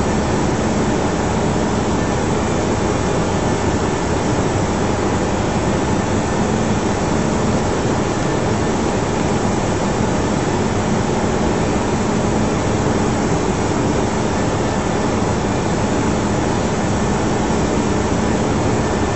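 Jet engines drone steadily with a constant rushing hum.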